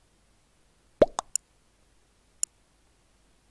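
A short electronic chime pings as a chat message arrives.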